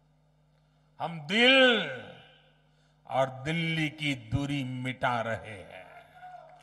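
An elderly man speaks forcefully through a microphone and loudspeakers.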